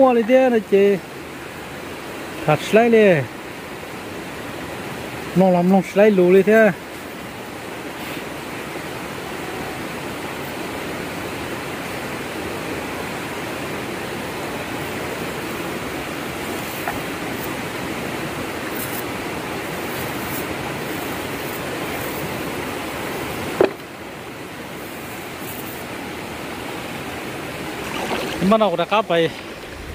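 Shallow river water flows and babbles steadily nearby.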